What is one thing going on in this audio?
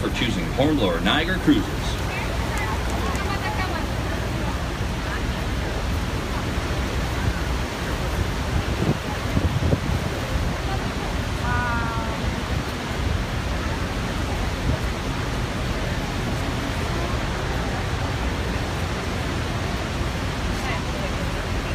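People in a crowd talk and call out excitedly nearby.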